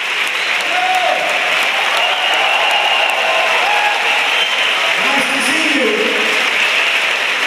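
A man speaks into a microphone over loudspeakers.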